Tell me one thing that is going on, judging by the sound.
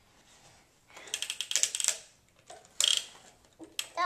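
Plastic toy pieces clatter and click.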